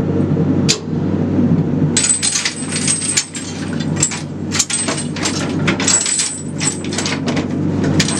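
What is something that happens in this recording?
A machine hums low and steadily.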